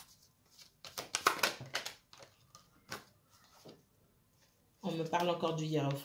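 Playing cards rustle and flick as a deck is shuffled in the hands.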